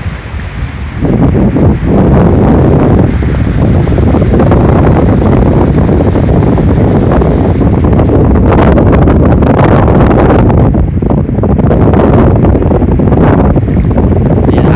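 Small waves break and wash onto a shore.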